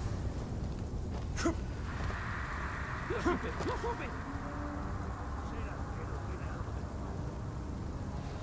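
Hands scrape and grab onto stone as a figure climbs a wall.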